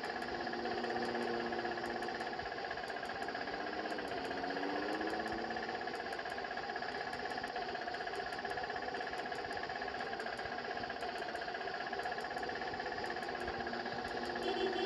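An auto-rickshaw engine putters steadily.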